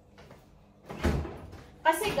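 A fridge door opens with a soft thud.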